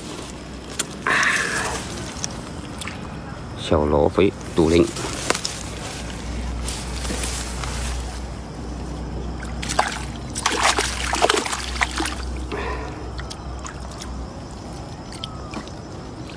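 A nylon keep net rustles and scrapes as it is handled.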